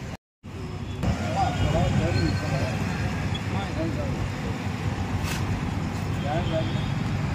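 A middle-aged policeman talks firmly to a man up close.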